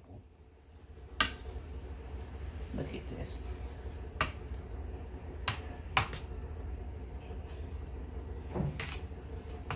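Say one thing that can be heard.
Hands squish and mash a soft mixture in a bowl.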